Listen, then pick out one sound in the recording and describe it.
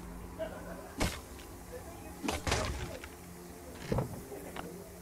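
An axe chops into a tree trunk with repeated sharp thuds.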